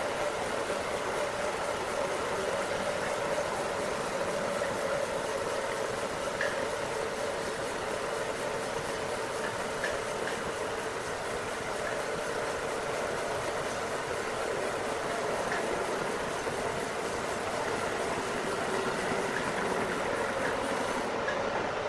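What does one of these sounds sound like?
A bandsaw cuts steadily through a log with a loud, droning whine.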